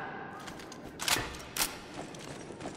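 An assault rifle fires.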